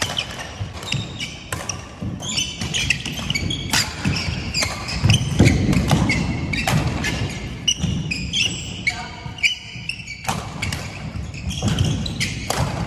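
Shoes squeak sharply on a wooden court floor.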